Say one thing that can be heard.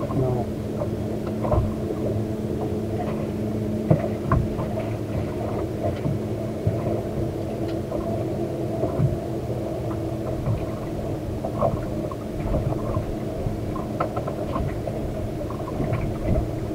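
An outboard motor hums steadily.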